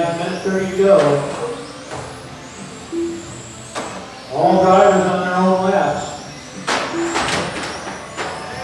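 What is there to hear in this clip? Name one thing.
Small electric motors whine high and rise and fall in pitch as toy cars race around a track.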